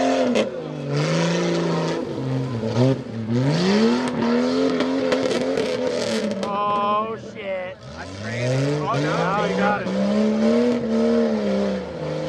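Tyres spin and spray wet mud.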